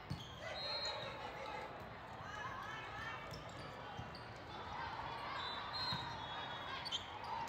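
Shoes squeak on the court.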